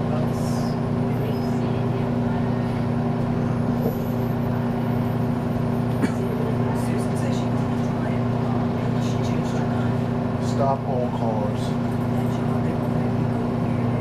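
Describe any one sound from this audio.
A bus engine hums steadily while the bus rolls along.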